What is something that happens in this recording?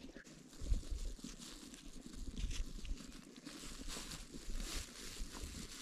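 A small knife slices through a soft tomato.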